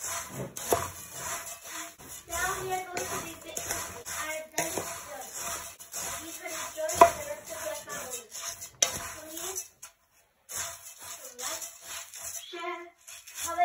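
A spatula scrapes and stirs rice in a metal pot.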